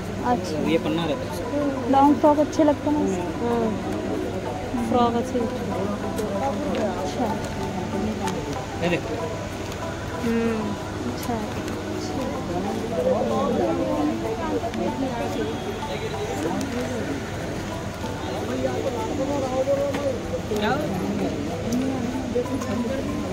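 A crowd of people chatters nearby, indoors.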